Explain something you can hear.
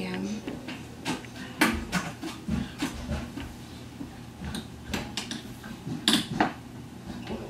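Curtain rings scrape and clink along a metal rod.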